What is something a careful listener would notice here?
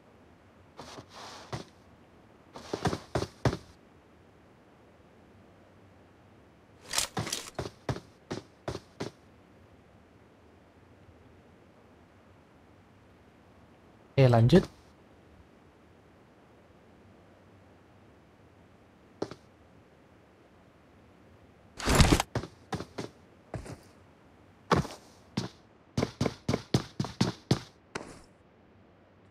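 Footsteps tap on a tiled roof in short bursts.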